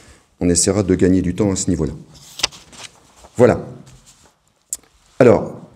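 A man speaks calmly through a microphone, with short pauses.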